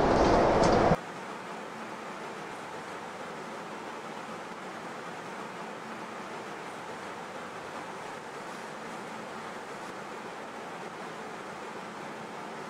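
A train's motors hum steadily while standing.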